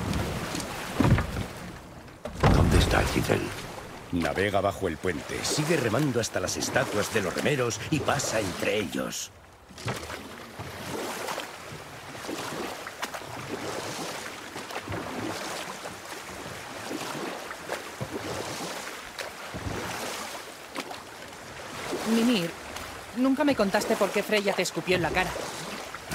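Oars splash and churn through water as a boat is rowed along.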